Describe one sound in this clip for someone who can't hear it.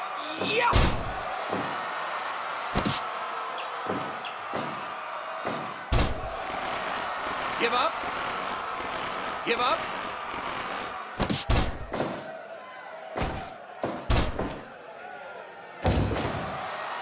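Heavy thuds and slaps sound as wrestlers strike each other and hit the mat.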